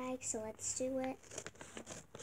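A young girl speaks close by in a high voice.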